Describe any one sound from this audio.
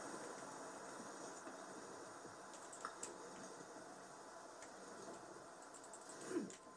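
Wind blows steadily from a video game through a television speaker.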